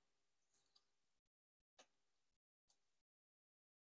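Cards tap softly as they are laid on a table.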